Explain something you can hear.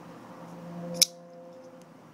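A folding knife blade snaps into place with a sharp click.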